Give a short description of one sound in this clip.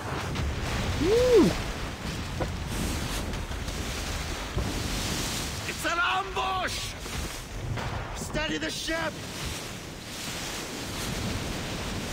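Strong wind howls steadily through a storm.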